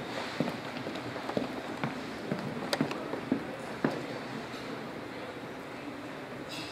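A crowd of adults chatters in a large room.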